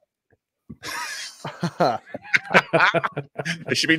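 A man laughs over an online call.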